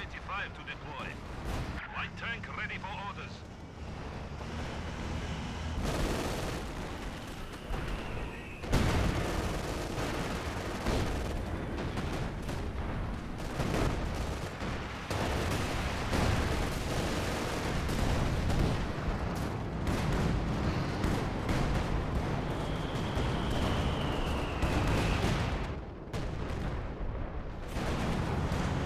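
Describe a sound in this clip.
Tank engines rumble.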